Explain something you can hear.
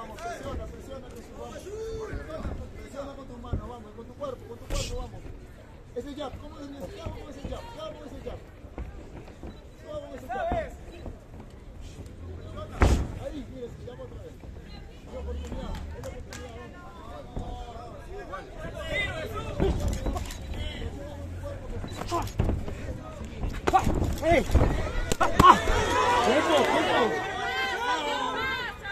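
A crowd cheers and shouts around the ring outdoors.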